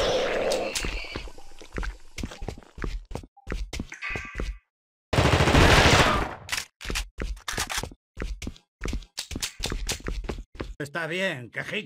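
Heavy footsteps thud quickly on a hard floor.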